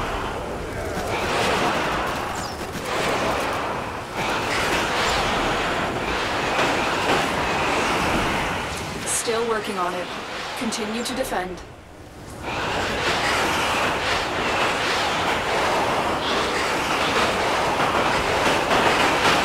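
An electric beam weapon crackles and hisses loudly.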